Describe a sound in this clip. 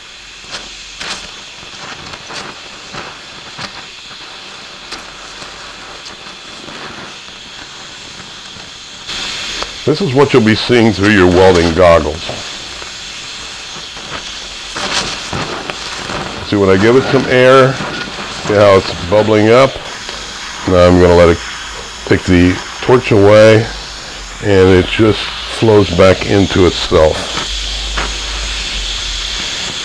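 A welding arc crackles and sizzles.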